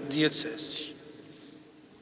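A man speaks briefly into a microphone in a large echoing hall.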